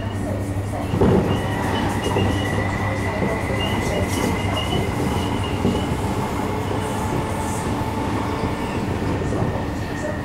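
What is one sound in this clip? Another train rushes past close by with a sudden whoosh.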